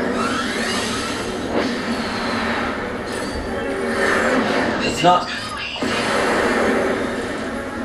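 Spaceship engines hum and roar in a video game.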